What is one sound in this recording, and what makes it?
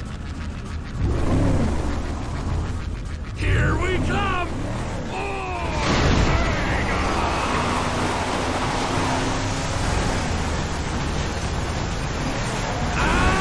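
An engine roars as an off-road vehicle accelerates.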